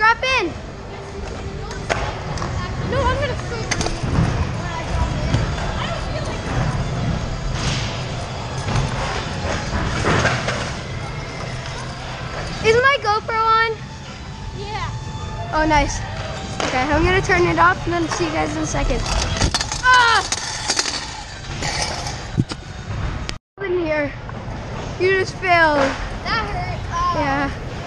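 Young children shout and squeal nearby in a large echoing space.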